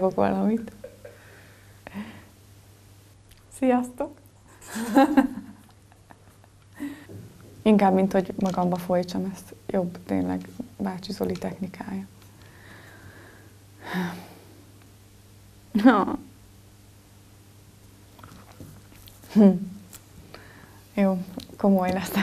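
A young woman speaks clearly into a microphone, close by, in short bursts with pauses.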